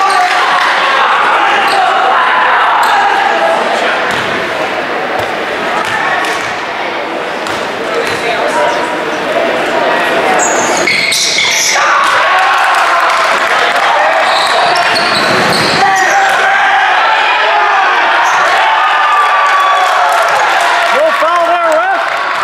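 A crowd of spectators talks and cheers in a large echoing gym.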